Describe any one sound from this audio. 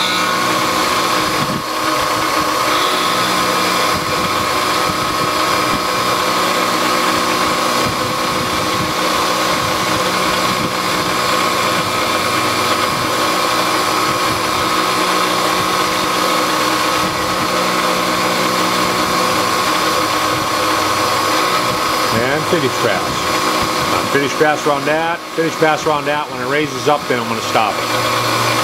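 A milling machine cutter whines steadily as it grinds through metal.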